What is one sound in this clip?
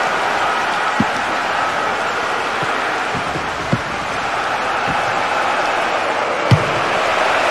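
A football is struck with a sharp thud.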